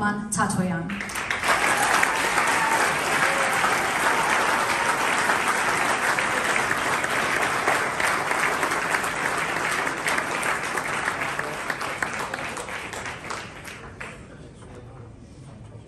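An audience applauds steadily, then the applause fades.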